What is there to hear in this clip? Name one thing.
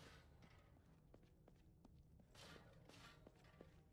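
Footsteps run on cobblestones.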